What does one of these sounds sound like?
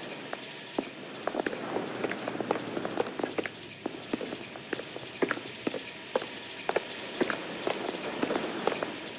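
Footsteps click steadily on a hard stone floor.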